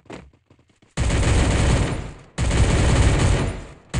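A rapid-fire gun shoots in long, loud bursts.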